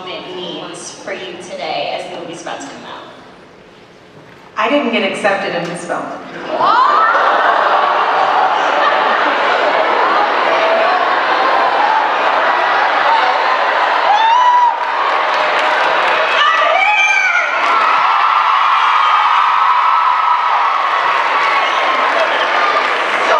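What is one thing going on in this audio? A woman speaks into a microphone, heard through loudspeakers.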